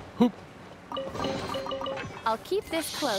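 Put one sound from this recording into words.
A treasure chest opens with a bright, tinkling chime.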